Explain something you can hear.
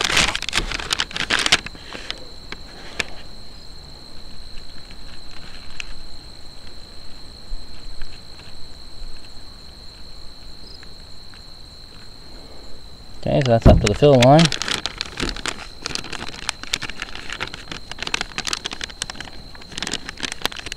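A paper packet crinkles and rustles in hands.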